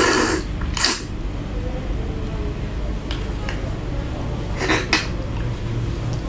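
A young woman sucks and slurps at crab meat up close.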